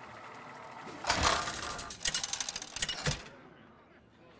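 A game's selection wheel spins with a rapid ticking rattle.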